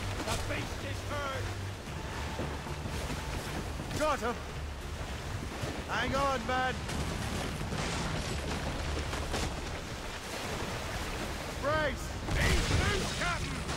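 Water splashes loudly as a large animal breaks the surface.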